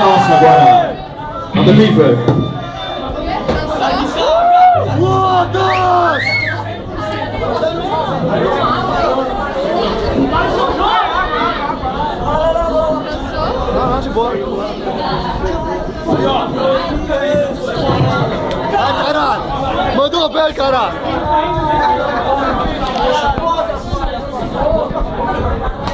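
A rock band plays loudly with heavy distortion.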